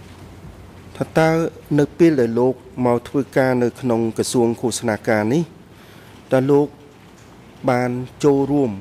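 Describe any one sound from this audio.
A man speaks formally into a microphone, heard through a loudspeaker system.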